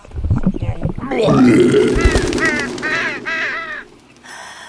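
A flock of crows caws overhead.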